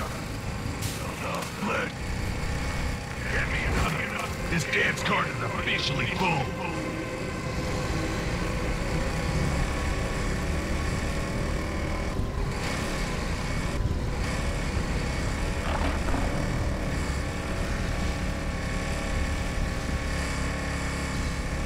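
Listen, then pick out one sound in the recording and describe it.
A motorbike engine drones steadily.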